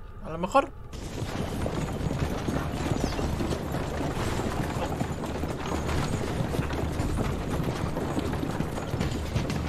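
A horse-drawn carriage rattles over a rough track.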